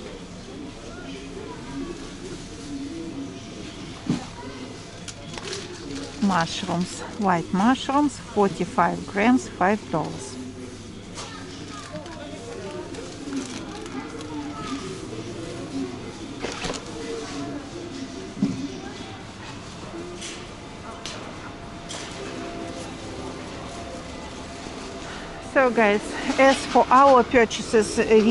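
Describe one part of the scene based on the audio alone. Shoppers murmur in a large echoing hall.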